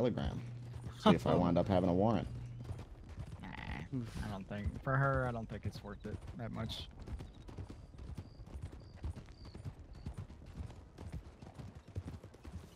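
Horses gallop, hooves thudding quickly on a dirt road.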